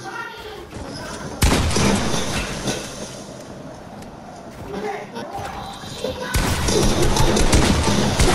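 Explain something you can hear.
Gunshots blast in quick bursts.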